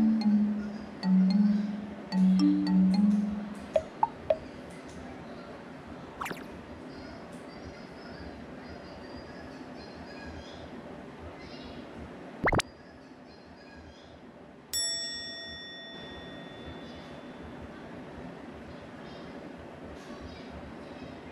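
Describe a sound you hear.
A small dog scratches and paws at a soft bed.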